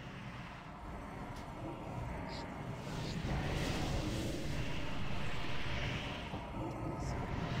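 Magic spells crackle and blast amid a noisy fantasy battle.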